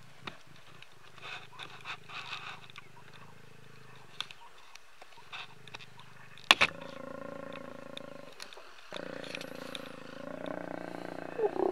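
A lion growls and snarls close by.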